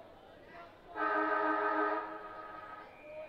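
A whistle blows loudly for about a second.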